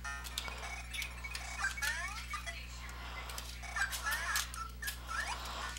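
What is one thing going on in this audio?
Retro video game music plays in bright electronic beeps.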